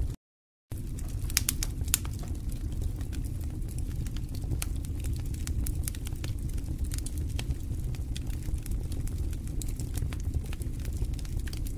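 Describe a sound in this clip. A wooden spoon stirs and scrapes thick batter in a metal pot.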